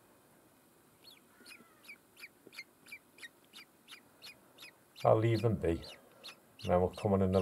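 Bird chicks cheep in quick, repeated high calls.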